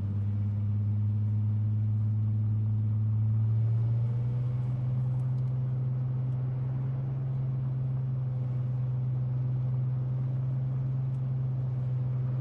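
A car engine hums low and steady, shifting pitch slightly partway through.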